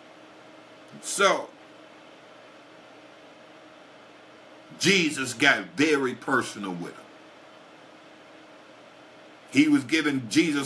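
A man speaks calmly and closely into a microphone, in short bursts with pauses.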